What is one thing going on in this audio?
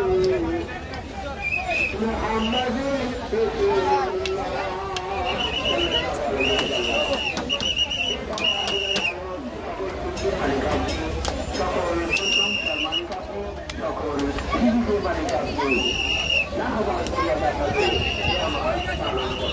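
A crowd of men talks and calls out all around, outdoors.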